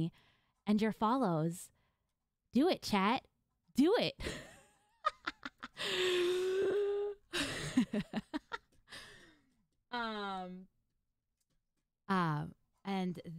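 A young woman talks and laughs with animation, close to a microphone.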